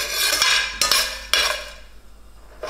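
A metal spatula scrapes and stirs seeds in a steel pan.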